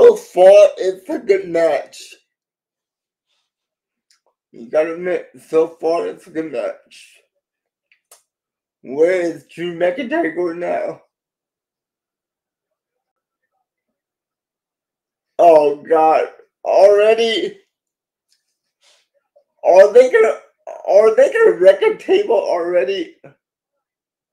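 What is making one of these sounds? A middle-aged man speaks calmly in bursts over an online call.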